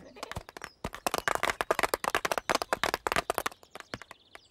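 A small crowd claps rapidly and excitedly.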